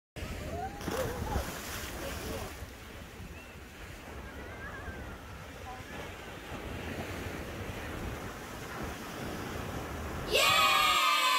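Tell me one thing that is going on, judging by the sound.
Waves wash and splash against rocks.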